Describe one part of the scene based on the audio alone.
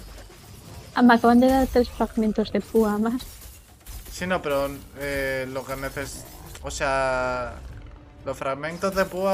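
A young man talks with animation through a close microphone.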